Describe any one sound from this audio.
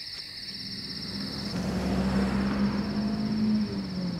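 A car engine rumbles as it approaches.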